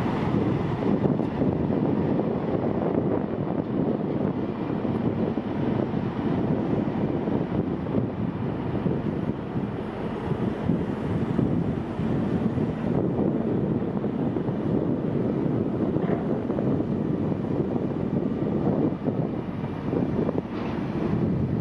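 Wind blusters steadily outdoors.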